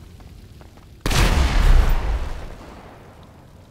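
A shotgun fires with a loud, echoing blast.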